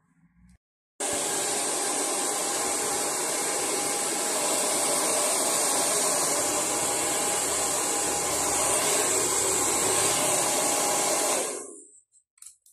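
A hair dryer blows with a steady loud whoosh, then switches off.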